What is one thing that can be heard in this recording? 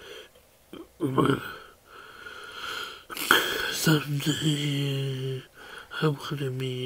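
A young man speaks close up.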